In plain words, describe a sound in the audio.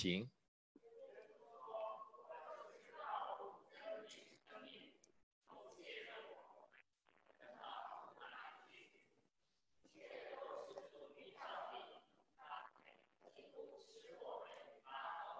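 A man speaks calmly into a microphone, heard through a loudspeaker in an echoing room.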